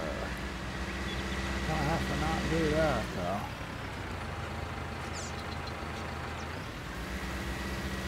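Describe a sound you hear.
A tractor engine hums steadily as the tractor drives slowly.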